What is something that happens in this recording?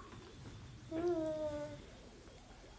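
A baby makes a short whiny sound close by.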